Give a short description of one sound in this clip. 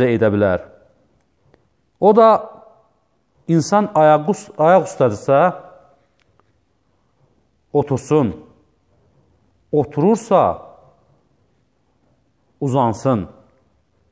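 A middle-aged man speaks calmly in short phrases, close to a microphone, with pauses between them.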